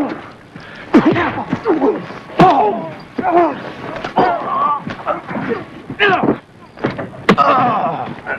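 Bodies thud against a car.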